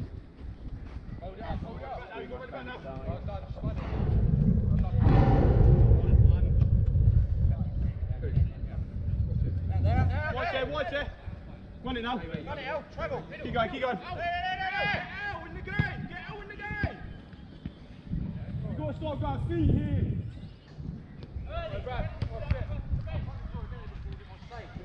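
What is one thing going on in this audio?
Men shout and call to one another outdoors during a football match.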